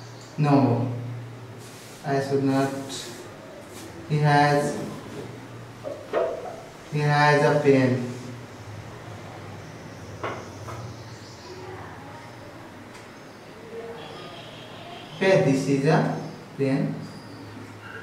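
A man speaks calmly and clearly, close by, in short bursts with pauses.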